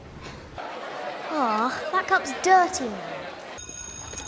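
A girl speaks in a startled voice.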